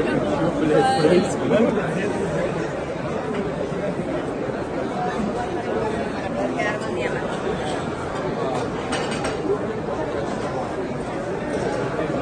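A crowd of men and women chatter in a large room.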